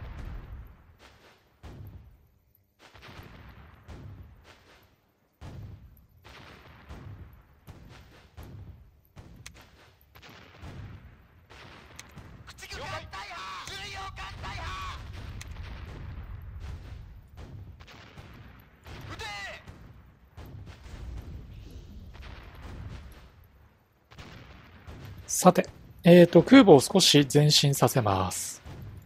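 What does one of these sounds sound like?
Heavy guns boom and shells explode in short bursts.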